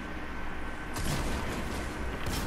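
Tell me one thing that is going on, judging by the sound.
An explosion bursts with a loud crack.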